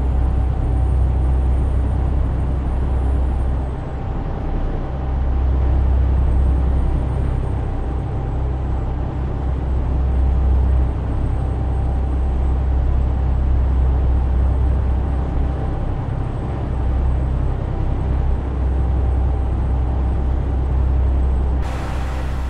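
Tyres roll along the road.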